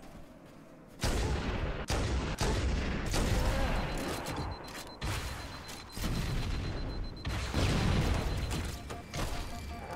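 Heavy gunfire and explosions boom loudly.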